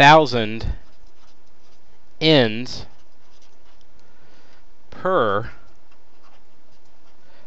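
A marker scratches and squeaks on paper.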